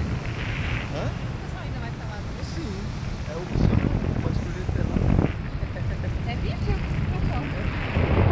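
A young woman talks and laughs up close.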